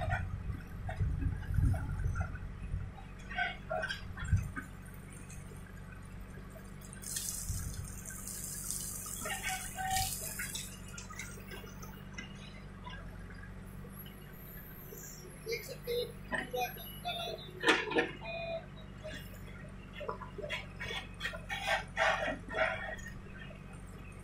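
A diesel backhoe loader engine runs under load.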